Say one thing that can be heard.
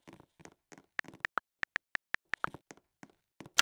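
Keyboard keys tap quickly in a row.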